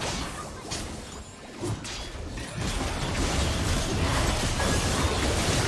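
Spell effects whoosh, crackle and blast during a fantasy battle.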